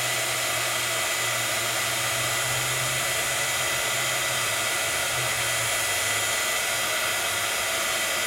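A heat gun blows and whirs steadily.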